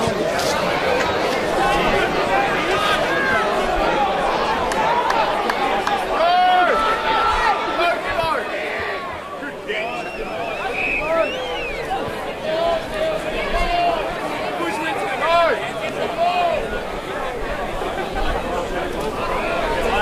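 Men shout to each other across an open field outdoors.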